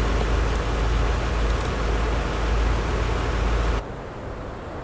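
Traffic rumbles steadily in the background.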